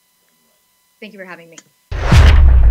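A young woman speaks briefly and calmly over an online call.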